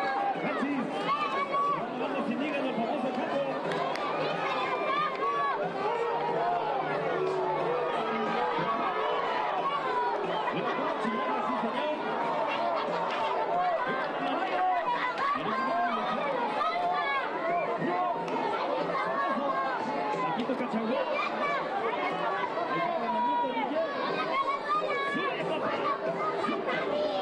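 A large crowd cheers, shouts and whistles loudly throughout.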